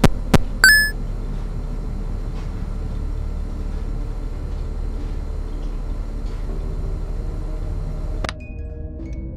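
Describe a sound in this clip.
An electric fan whirs with a steady low hum.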